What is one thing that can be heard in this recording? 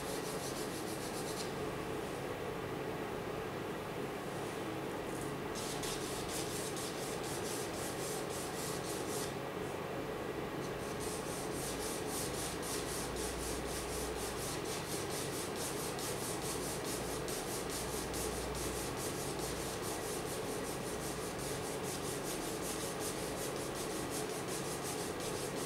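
A pencil scratches on paper in quick, rhythmic strokes.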